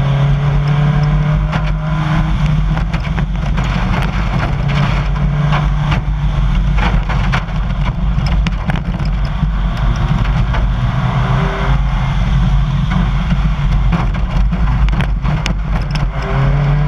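A rally car engine roars at full throttle, shifting through gears.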